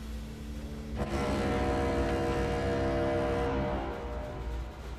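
An old monitor switches off with a rising electric hum.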